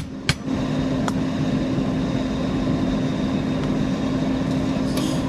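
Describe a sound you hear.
An electric welding arc buzzes and crackles steadily.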